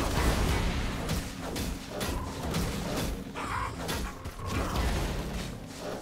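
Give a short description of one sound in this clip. Game characters clash in a fight, with magic blasts and hits bursting out.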